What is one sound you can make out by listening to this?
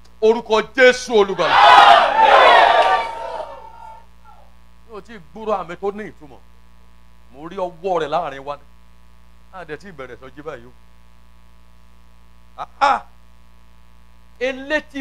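A man preaches with animation through a loudspeaker.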